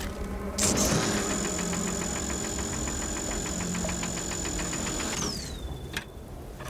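A cutting beam hisses and buzzes steadily against rock, then winds down.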